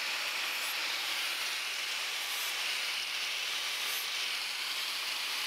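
An electric sander whirs steadily against metal.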